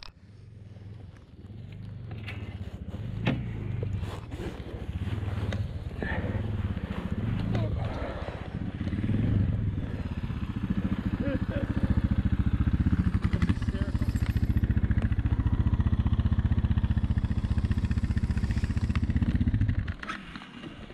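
A motorcycle engine idles with a low, steady rumble close by.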